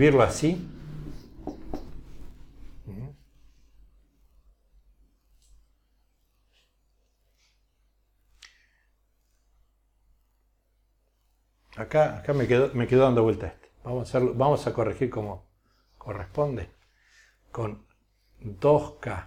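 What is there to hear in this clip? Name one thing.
A man lectures calmly, close by, through a microphone.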